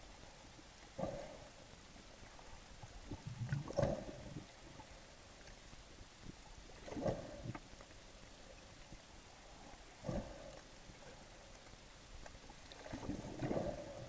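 Air bubbles gurgle and rumble underwater in short bursts every few seconds.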